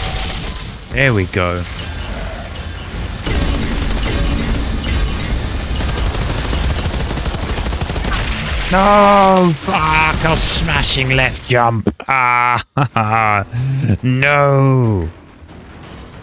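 A monster roars and shrieks.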